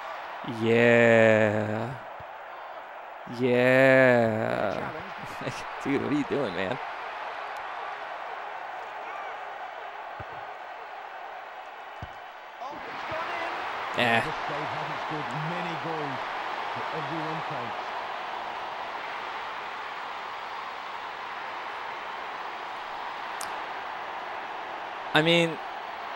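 A man speaks into a close microphone in short, lively bursts.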